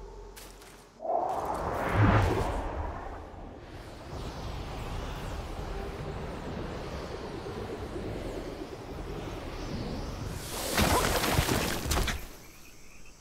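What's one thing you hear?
A strong wind rushes past at speed, rising and falling.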